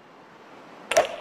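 A golf club strikes a ball with a sharp crack.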